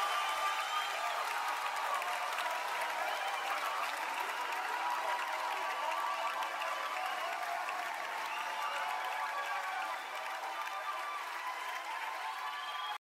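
A rock band plays loudly in a large hall.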